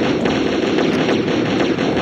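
A flamethrower roars.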